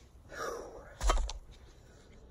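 A wooden log knocks down onto the forest floor.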